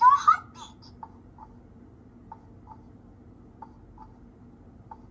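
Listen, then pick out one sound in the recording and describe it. A toy stethoscope plays a soft, repeating heartbeat sound.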